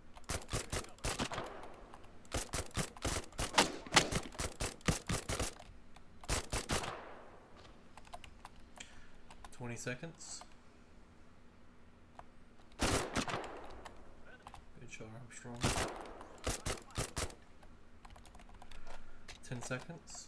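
Gunfire rattles in quick bursts, with pauses between them.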